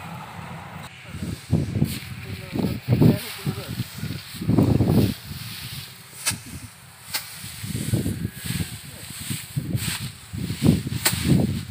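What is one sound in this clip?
Dry rice straw rustles and crackles as it is handled.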